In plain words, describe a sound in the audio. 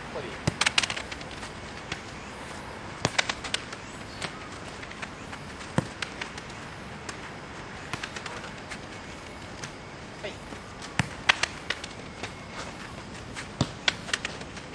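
A football is kicked with sharp thuds outdoors.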